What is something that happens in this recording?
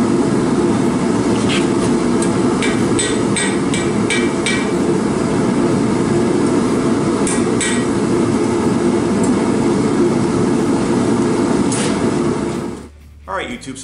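A gas forge roars steadily.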